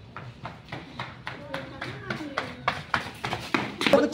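Two young men run on pavement with quick footsteps.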